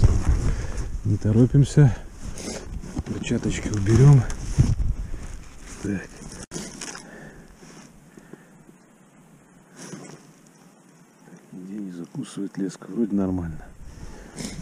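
A man speaks calmly outdoors, close by.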